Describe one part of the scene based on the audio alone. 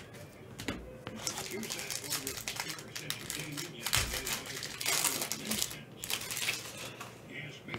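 Card packaging rustles and crinkles in gloved hands.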